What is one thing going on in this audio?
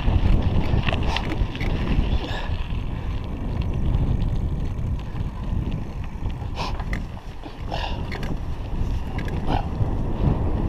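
A bicycle rattles over bumps in the road.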